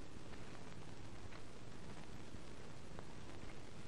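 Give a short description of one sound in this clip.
A lamp switch clicks.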